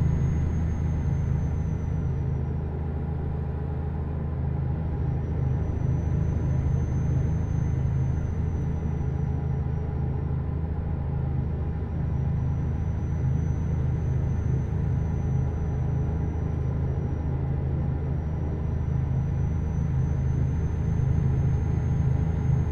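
A truck engine hums steadily as it drives.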